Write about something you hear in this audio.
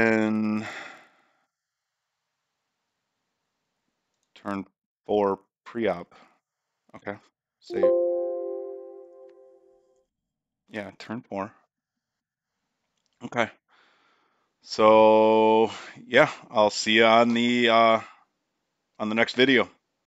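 A man talks calmly and casually into a close microphone.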